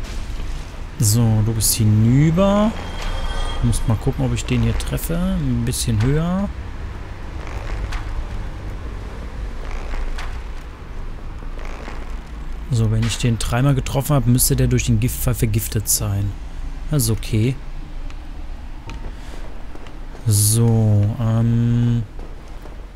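A young man talks with animation, close to a microphone.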